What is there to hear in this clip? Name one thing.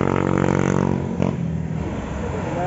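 Another motorcycle engine hums in the distance.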